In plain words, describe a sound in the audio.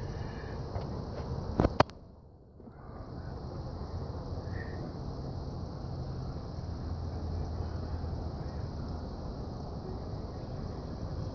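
Leaves rustle in a tree as a monkey moves through the branches.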